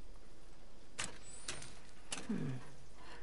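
Buttons on a switch box click.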